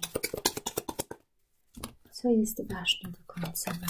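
Cards slap softly onto a table.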